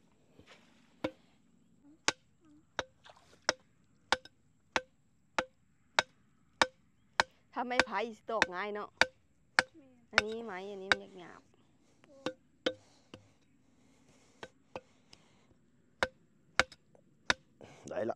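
A stake is pounded into soft ground with steady, repeated knocks.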